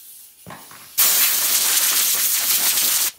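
Compressed air hisses loudly from a nozzle.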